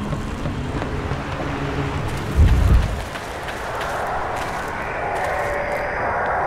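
Footsteps run quickly over wooden planks and then dirt.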